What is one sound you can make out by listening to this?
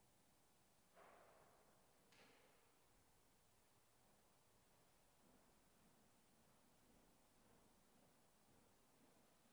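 A man speaks softly in a large echoing hall.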